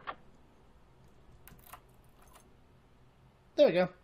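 A key turns in a door lock with a click.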